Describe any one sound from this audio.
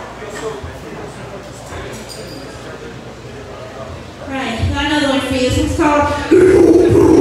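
A drummer pounds the drums and cymbals.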